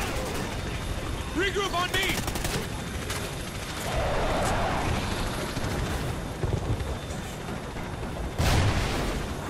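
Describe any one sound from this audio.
A helicopter's rotors thump and roar nearby.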